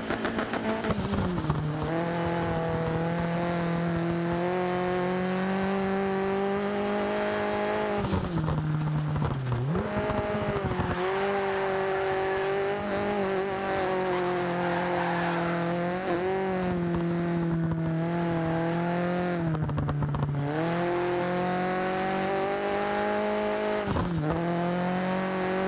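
A car engine roars loudly, revving up and down as the gears change.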